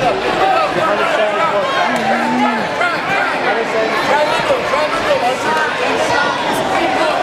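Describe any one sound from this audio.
A crowd of children and adults cheers and shouts throughout a large echoing gym.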